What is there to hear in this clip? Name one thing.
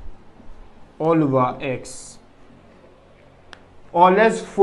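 A young man speaks calmly, as if explaining.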